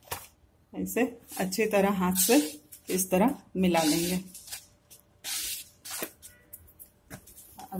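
A hand rubs and mixes dry flour in a bowl with a soft rustle.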